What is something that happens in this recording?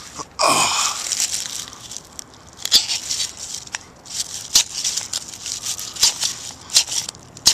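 A match scrapes and fizzes as it flares up close by.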